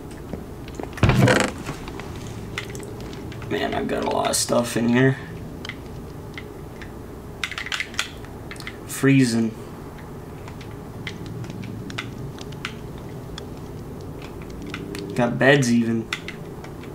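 A man speaks briefly and calmly close to a microphone.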